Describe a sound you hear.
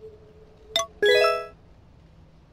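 A video game menu chimes with a short rising jingle.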